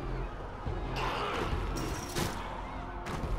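Heavy blows thud and crunch.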